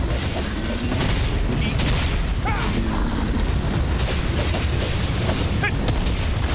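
Sword slashes and magic blasts hit a monster in rapid succession.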